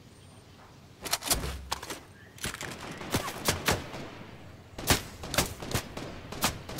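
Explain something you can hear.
Footsteps clatter quickly on wooden stairs.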